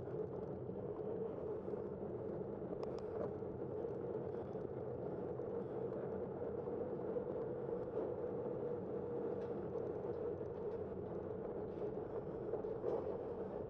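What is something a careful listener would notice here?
Wind rushes steadily past while moving.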